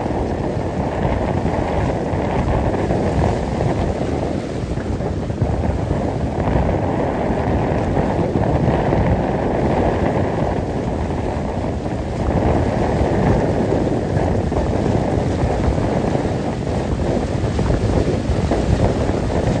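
Wind blows hard across the microphone outdoors.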